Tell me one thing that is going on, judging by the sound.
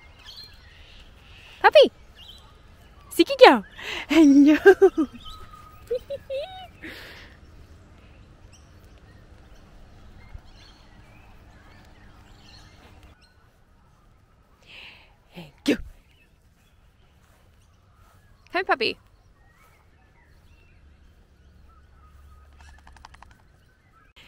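A dog's paws patter softly on grass.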